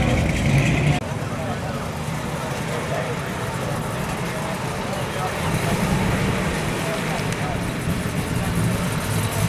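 Another car engine idles with a softer low hum as the car creeps forward.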